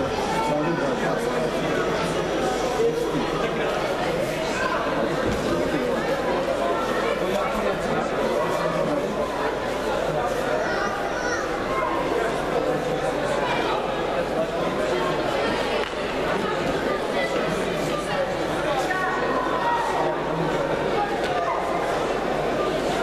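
A crowd of men and boys chatters in a large echoing hall.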